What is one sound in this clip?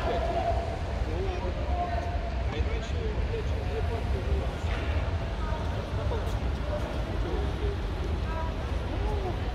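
People talk far off, echoing in a large hall.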